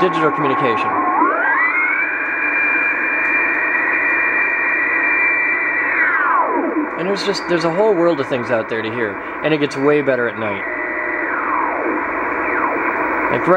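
Whistling tones slide up and down in pitch from a radio receiver as it is tuned.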